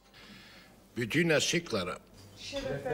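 A middle-aged man raises a toast in a calm voice.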